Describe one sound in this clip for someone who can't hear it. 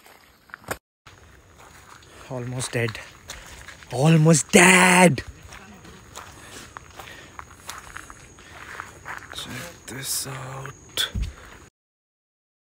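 A young man talks with animation close to the microphone.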